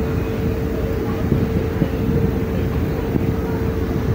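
Water churns and rushes below a moving boat.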